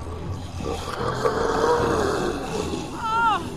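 Several zombies moan and groan together.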